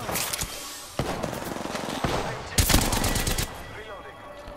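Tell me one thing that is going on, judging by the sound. Rapid gunshots fire in loud bursts.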